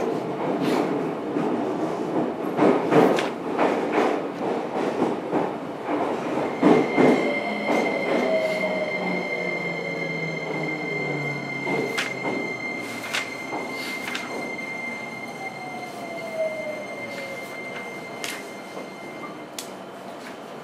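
A train stands at a platform with its motor humming.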